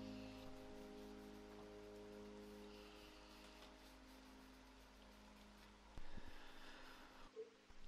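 Fingers rub softly against a clay teapot.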